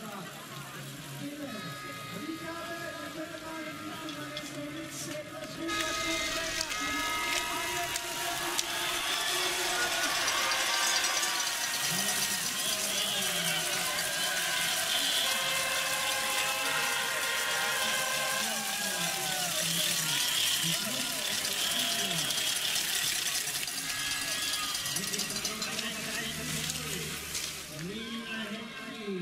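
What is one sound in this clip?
Horns blow in a crowd.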